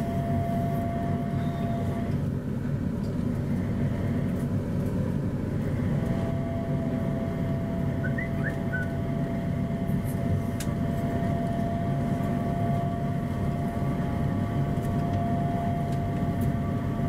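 A train rumbles and hums steadily along an elevated track, heard from inside a carriage.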